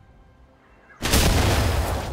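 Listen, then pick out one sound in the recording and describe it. A fiery blast bursts with a loud boom.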